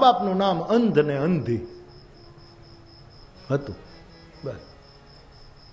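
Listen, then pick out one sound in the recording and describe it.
An elderly man speaks into a microphone, chanting in a sing-song way.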